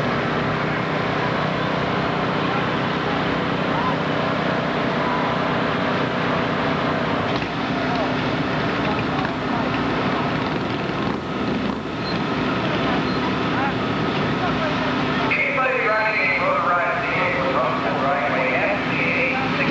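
An engine idles with a steady hum.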